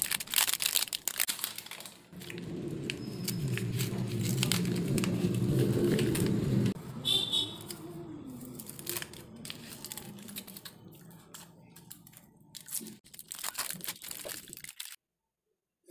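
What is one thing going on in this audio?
Paper and foil wrappers crinkle and rustle as hands unwrap a chocolate bar.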